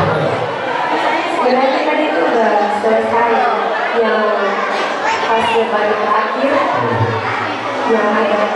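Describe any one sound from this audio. A young woman sings through a microphone over loudspeakers.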